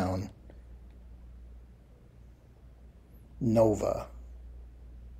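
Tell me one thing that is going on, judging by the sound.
A middle-aged man speaks calmly and briefly into a nearby microphone.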